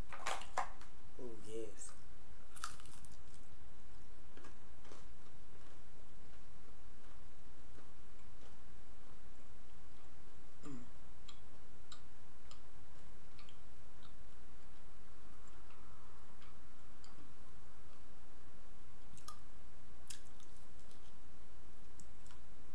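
A woman chews food with soft, wet mouth sounds close by.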